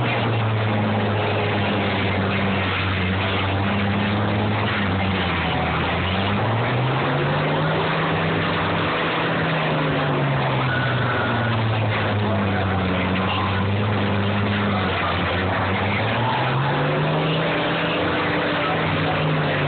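Tractor engines roar loudly, revving up and down.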